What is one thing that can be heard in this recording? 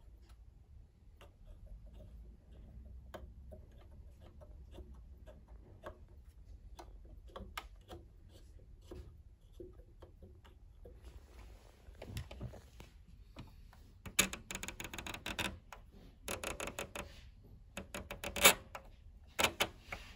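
A plastic dial clicks as it is turned by hand.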